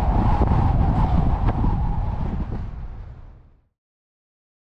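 A car engine rumbles steadily, then fades away.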